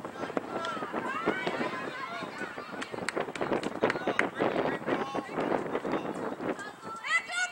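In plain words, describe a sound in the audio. Young girls shout and call out across an open field.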